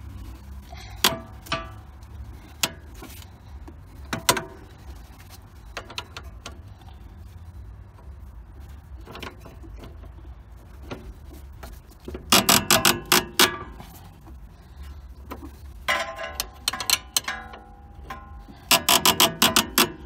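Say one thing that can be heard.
A ratchet wrench clicks in quick bursts as it turns a bolt.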